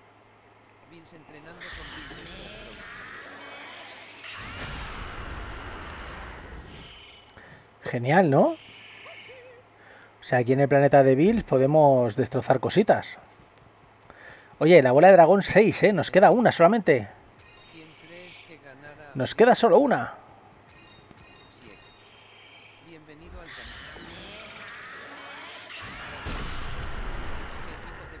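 An energy blast charges with a rising whoosh and roars.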